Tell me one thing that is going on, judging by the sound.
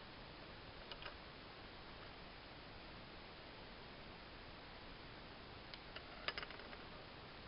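A plastic pen taps lightly against a wooden tabletop.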